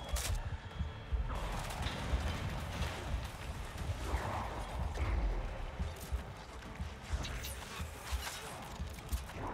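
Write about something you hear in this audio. Heavy blows and crashes thud and boom.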